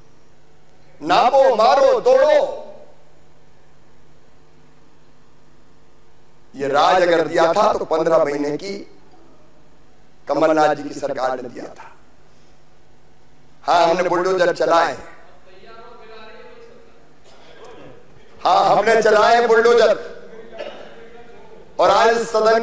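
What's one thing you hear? A middle-aged man speaks with emphasis into a microphone, in short bursts with pauses.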